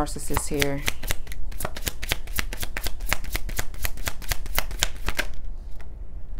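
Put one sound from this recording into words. Playing cards riffle and flick as they are shuffled.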